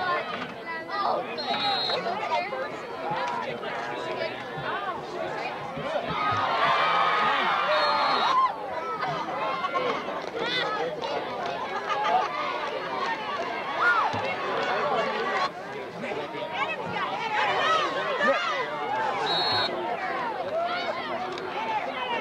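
Spectators close by talk and shout.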